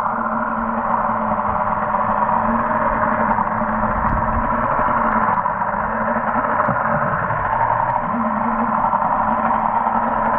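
Water churns with a dull, muffled rush underwater.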